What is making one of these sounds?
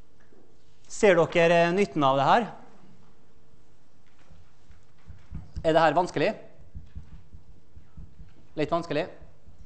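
An elderly man speaks calmly in short bursts through a microphone.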